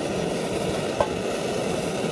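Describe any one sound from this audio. A metal pot clinks as it is set down on a stove.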